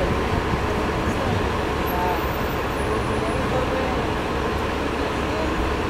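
A diesel city bus pulls away.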